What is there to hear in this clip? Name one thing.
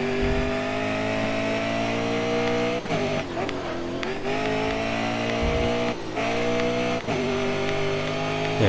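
A racing car engine roars at high revs, dropping briefly with each gear change.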